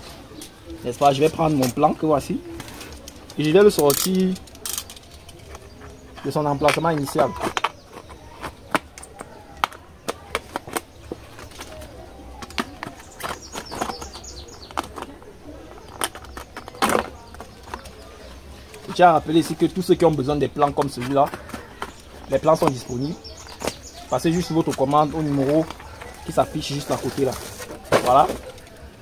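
Loose soil pours and patters softly onto a heap.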